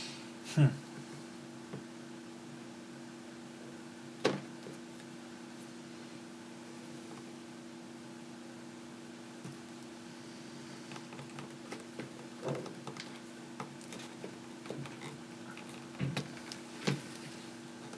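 Small metal parts click and tap as they are handled on a table.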